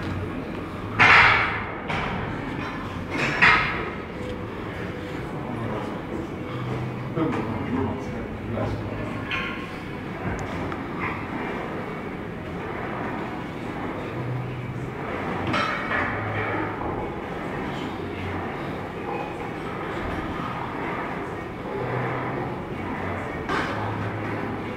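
A man grunts and strains loudly.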